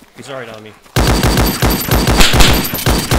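A rifle fires rapidly in loud bursts.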